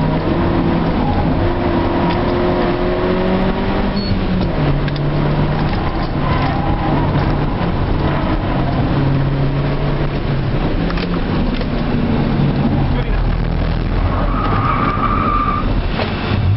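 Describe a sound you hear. A car engine roars loudly up close, its pitch rising and falling.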